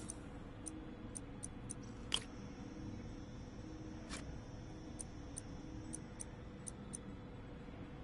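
Short electronic menu clicks tick as a selection moves.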